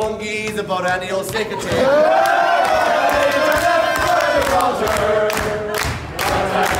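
A group of young men and a woman sing loudly together close by.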